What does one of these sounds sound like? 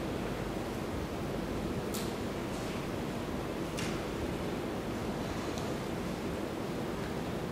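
A pen scratches faintly on paper.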